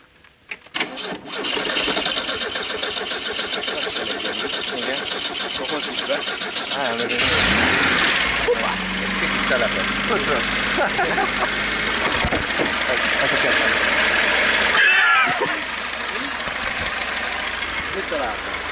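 A car engine starts and idles loudly nearby.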